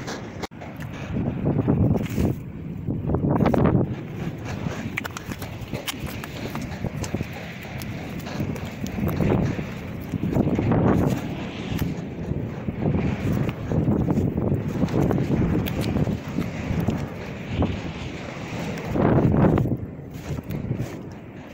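Gusty wind rumbles outdoors.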